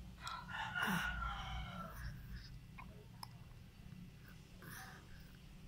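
A baby sucks on a feeding bottle.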